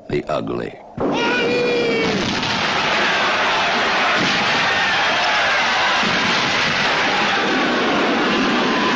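Cannons fire with loud booms.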